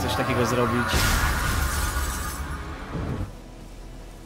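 A magic burst whooshes and crackles.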